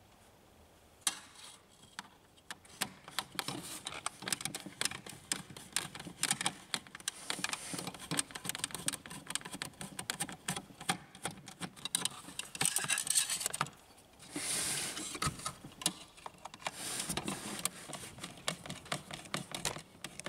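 A screwdriver clicks and scrapes against metal parts.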